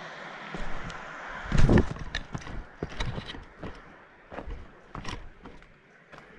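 A trekking pole taps on stones.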